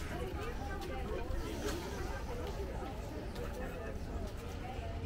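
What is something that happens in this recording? Several adult men and women chatter nearby in a busy outdoor crowd.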